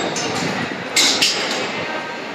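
Ticket gates clack open as people pass through.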